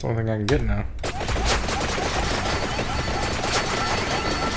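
Rapid electronic game sound effects crackle and patter.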